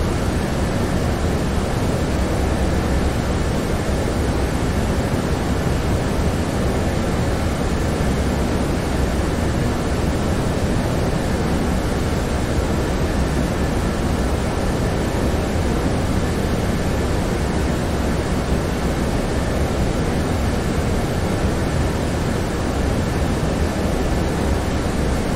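Jet engines roar steadily in flight.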